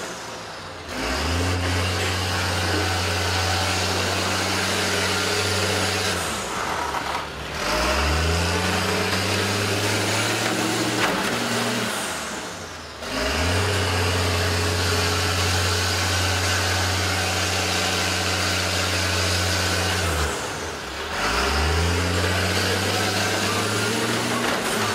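A bus engine roars loudly, revving up and dropping in repeated bursts.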